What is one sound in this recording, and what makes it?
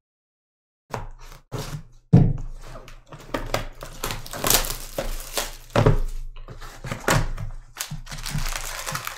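Plastic wrapping crinkles and tears on a box.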